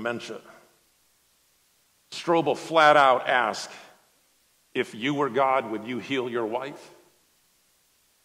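A man speaks calmly through a microphone in a large room, pausing between phrases.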